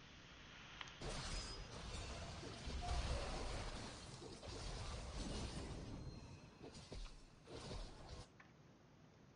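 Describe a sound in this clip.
Video game spell and combat effects whoosh and clash.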